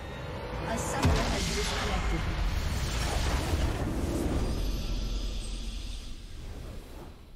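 A game's structure explodes with a deep rumbling blast.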